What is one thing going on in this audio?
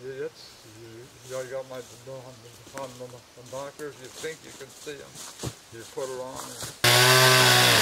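A man speaks calmly outdoors.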